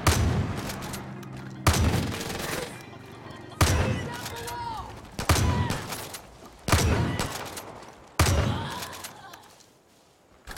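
Shotgun blasts boom loudly, one after another, with echoes rolling away.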